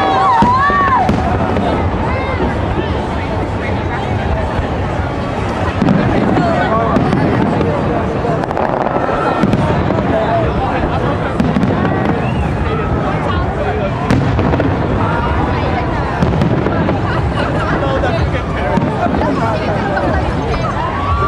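Fireworks boom and crackle overhead.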